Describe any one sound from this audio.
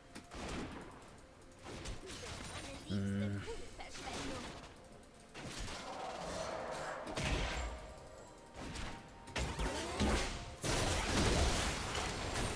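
Weapons clash and strike in quick hits.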